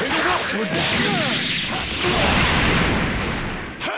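An energy blast explodes with a roar.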